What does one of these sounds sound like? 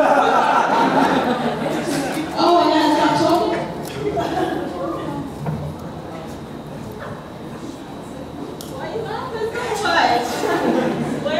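A young woman laughs near a microphone.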